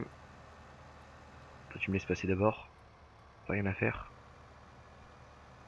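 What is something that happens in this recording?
A tractor engine hums steadily at a low pitch.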